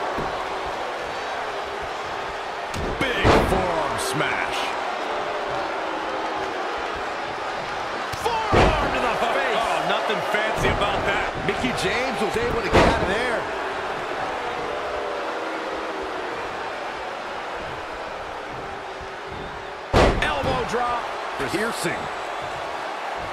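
A large crowd murmurs and cheers throughout.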